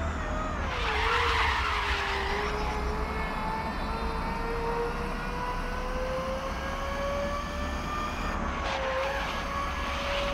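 A race car engine roars steadily, its pitch dipping and then slowly climbing.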